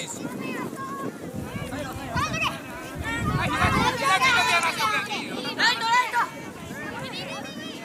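Young children shout and call out excitedly outdoors.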